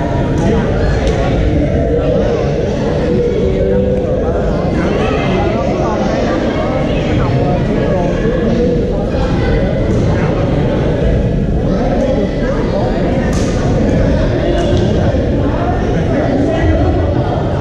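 Paddles pop against plastic balls in sharp, repeated knocks.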